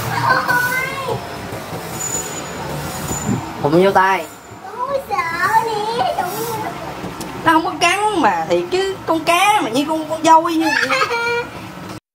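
A child shrieks and exclaims excitedly close by.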